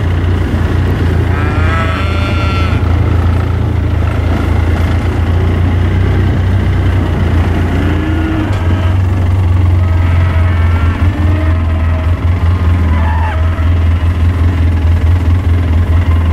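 Cattle tear and chew grass close by.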